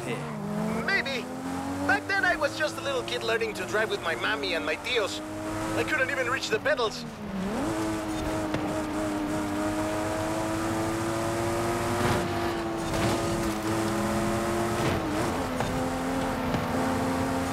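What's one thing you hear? A race car engine roars, its pitch rising and dropping as it shifts gears.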